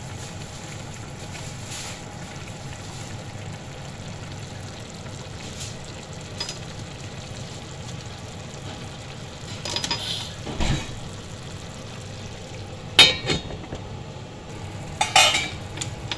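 Meat sizzles and bubbles steadily in a pan.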